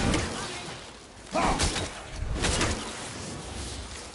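An axe swings and strikes with a heavy thud.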